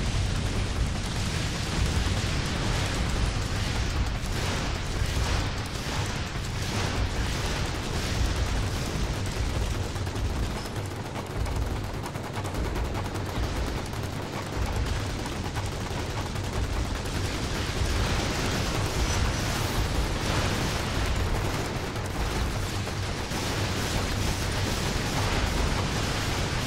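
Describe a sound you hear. Game explosions boom and roar.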